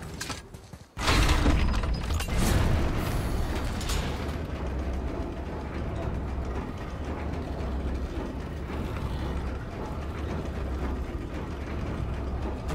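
Heavy stone machinery rumbles and grinds steadily.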